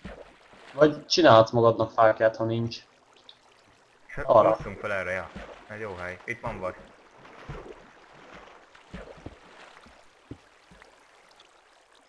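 Water flows and splashes nearby.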